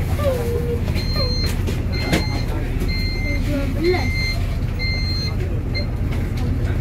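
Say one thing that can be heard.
A bus door chime beeps repeatedly.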